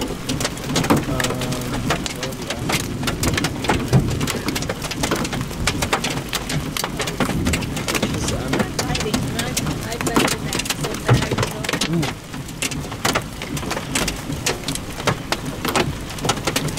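Heavy rain pours down and patters.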